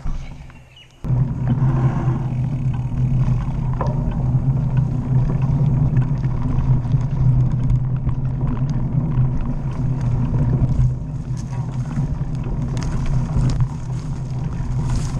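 Loud wind buffets the microphone as the bicycle picks up speed.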